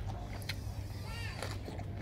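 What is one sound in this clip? A young man chews food noisily.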